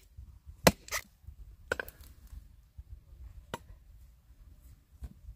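Leaves rustle and stems snap as shoots are picked by hand.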